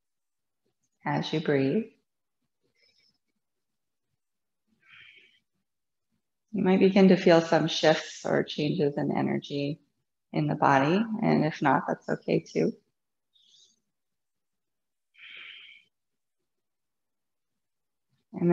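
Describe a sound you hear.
A woman speaks calmly and softly close to a microphone, with pauses.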